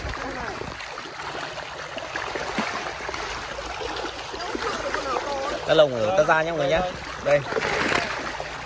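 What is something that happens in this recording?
Fish thrash and splash loudly in shallow water.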